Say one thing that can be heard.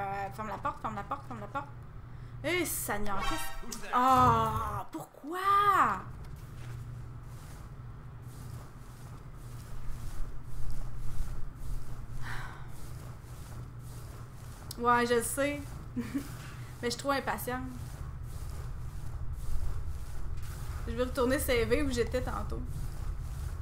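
A young woman talks animatedly into a close microphone.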